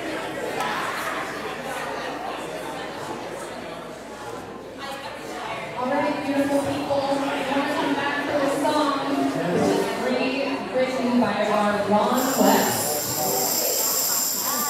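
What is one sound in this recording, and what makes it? A band plays music in a large echoing hall.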